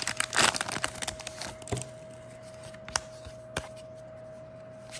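Cards rustle and slide against one another.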